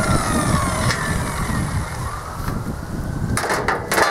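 A cut piece of steel tube clanks as it is dropped.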